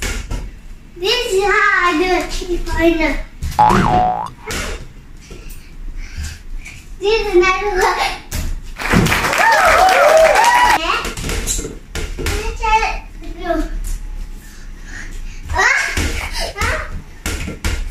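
A young boy talks and shouts excitedly nearby.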